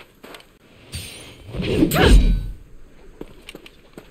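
A sword swings with a sharp whoosh.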